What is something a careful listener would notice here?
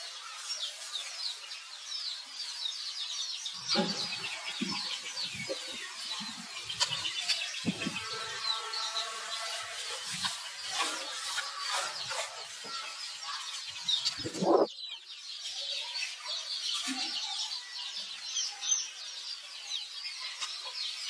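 A baby monkey squeals and cries close by.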